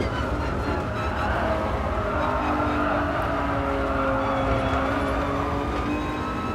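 Tyres squeal through a bend.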